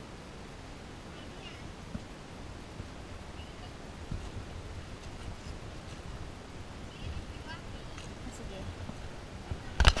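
Footsteps crunch on dry leaves on a forest trail.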